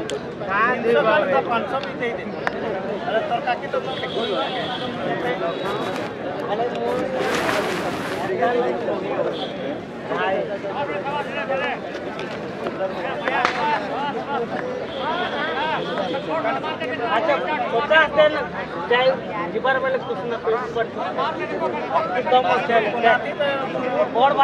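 Young men on a field call out to each other.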